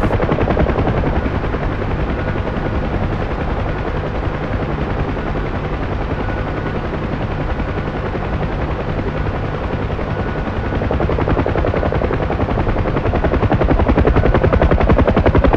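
A helicopter's rotor thumps rapidly and grows louder toward the end.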